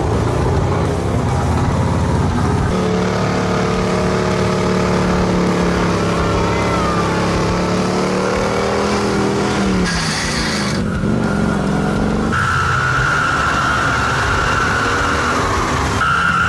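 Mud splashes and sprays under spinning tyres.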